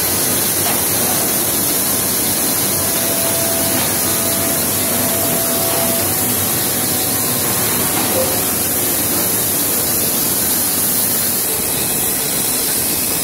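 Factory machinery hums and rattles steadily.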